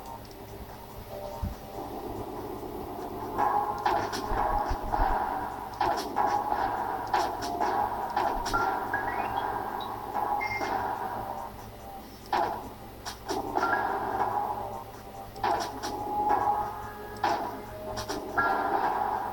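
Electronic game music plays through a small speaker.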